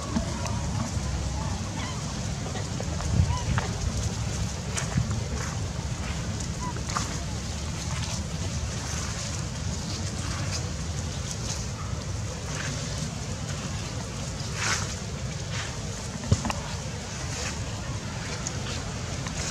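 Dry leaves rustle and crackle as small monkeys scamper and tumble about.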